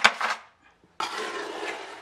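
Hands scoop and scrape wet mortar in a plastic bucket.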